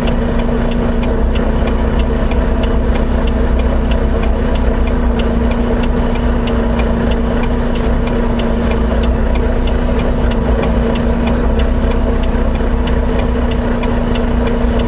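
A turn signal clicks in a quick, even rhythm.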